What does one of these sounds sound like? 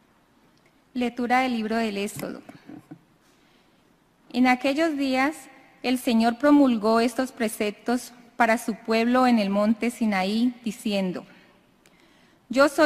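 A woman reads out calmly through a microphone.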